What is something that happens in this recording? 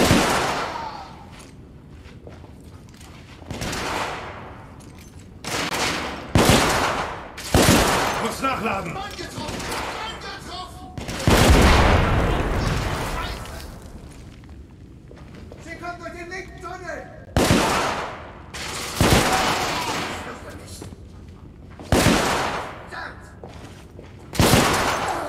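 Gunshots boom loudly, one at a time, each followed by a rumbling echo.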